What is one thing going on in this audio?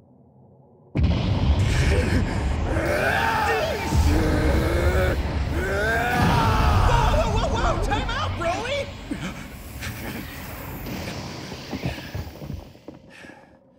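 A deep, powerful rumble surges and roars.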